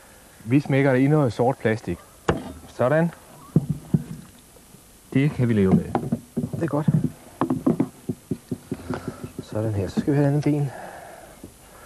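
A man talks calmly and steadily into a close microphone.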